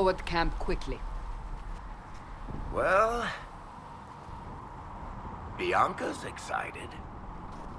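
A man speaks calmly in a close, clear voice.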